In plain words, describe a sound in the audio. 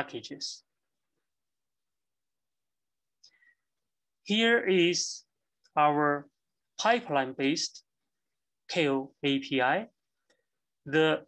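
A man speaks calmly into a microphone over an online call, in short phrases with pauses.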